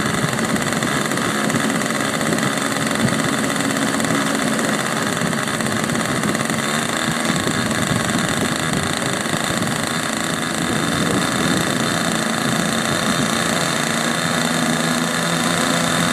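A small model engine runs loudly and steadily, close by.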